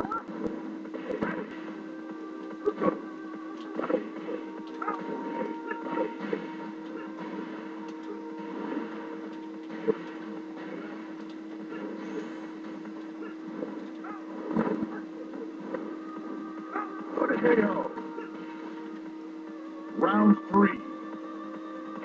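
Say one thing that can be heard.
Punches and kicks land with sharp thuds and whooshes.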